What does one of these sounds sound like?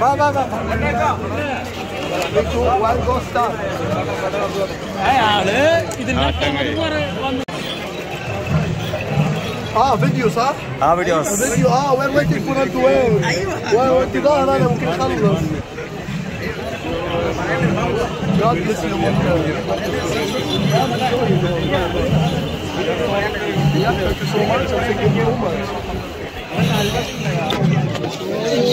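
A young man speaks close by with animation.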